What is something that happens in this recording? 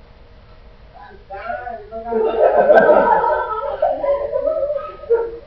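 A group of young men and women laugh and cheer loudly nearby.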